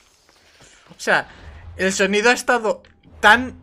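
A young man talks close to a microphone.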